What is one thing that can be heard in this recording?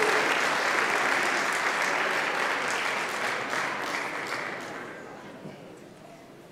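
An audience claps loudly, then the clapping fades away.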